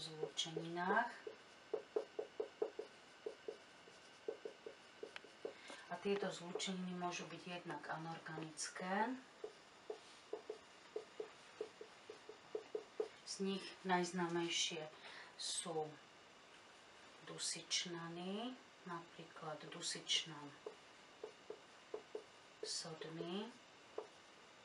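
A middle-aged woman speaks calmly and slowly nearby.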